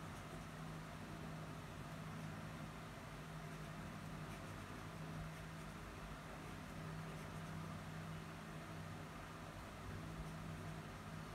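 A pen scratches softly across paper.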